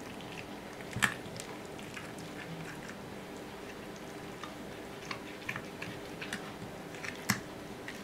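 A knife and fork clink and scrape against a plate.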